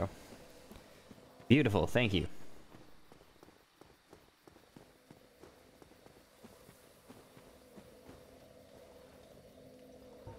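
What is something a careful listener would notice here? Armored footsteps clank on stone steps.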